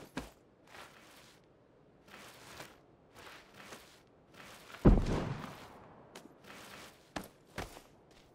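A game character crawls through rustling grass.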